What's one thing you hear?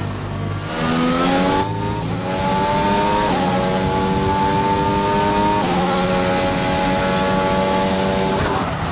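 A racing car engine screams at high revs, its pitch climbing through each gear and dropping sharply at every shift.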